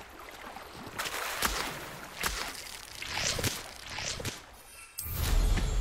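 Tall reeds rustle and swish as someone pushes through them.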